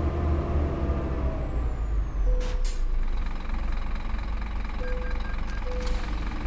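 A bus engine rumbles low and steady.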